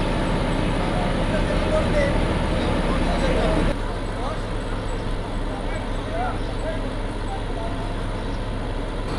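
Men talk in the distance outdoors.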